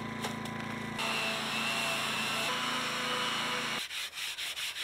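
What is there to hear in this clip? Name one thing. An electric sander whirs loudly against wood.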